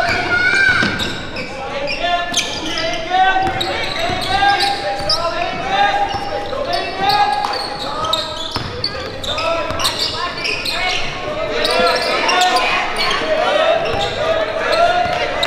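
A small crowd murmurs in a large echoing gym.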